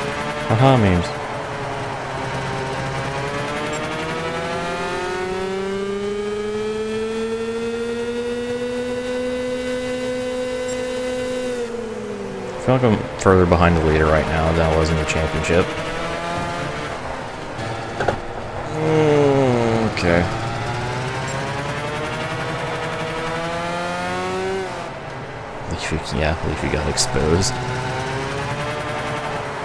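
A kart engine buzzes and whines, rising and falling in pitch as the kart speeds up and slows down.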